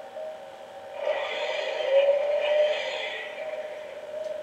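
Energy crackles and zaps loudly from a glowing machine.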